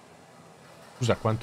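A man speaks loudly and animatedly into a close microphone.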